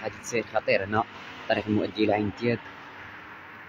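A man talks with animation close by, outdoors.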